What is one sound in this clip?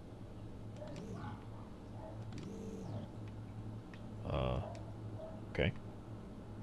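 A small mechanical lift clunks into place.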